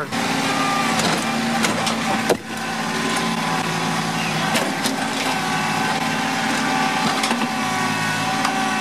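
A tractor's diesel engine runs steadily close by.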